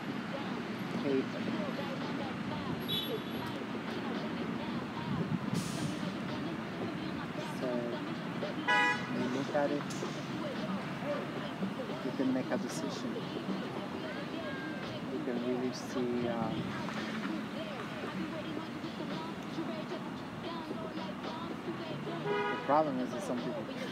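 A middle-aged woman speaks casually close by, outdoors.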